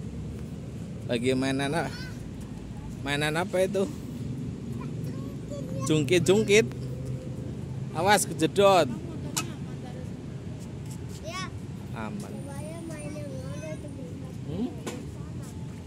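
Young children shout and chatter playfully nearby.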